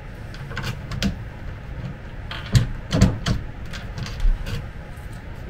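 Wood knocks sharply a few times.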